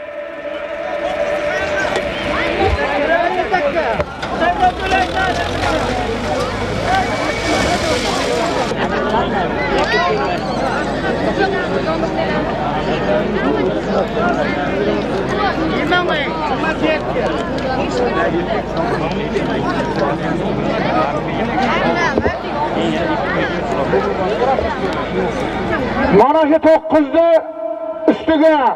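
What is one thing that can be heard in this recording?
A large crowd of men shouts and calls out loudly outdoors.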